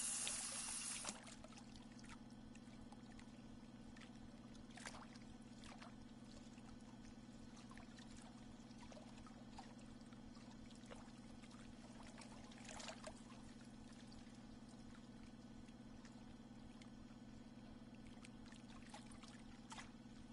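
A fishing reel clicks softly as line is wound in.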